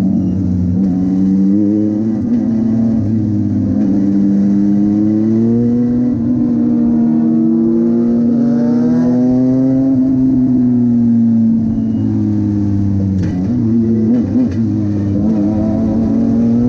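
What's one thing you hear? A race car engine roars loudly from inside the cabin, its pitch rising and falling with gear changes.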